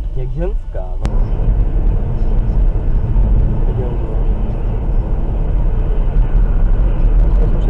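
A car's tyres rumble steadily on the road at speed.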